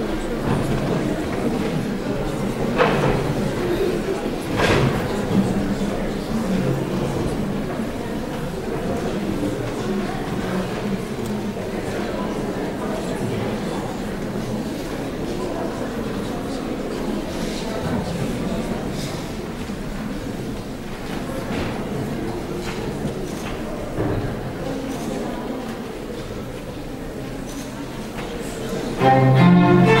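An audience murmurs softly in a large echoing hall.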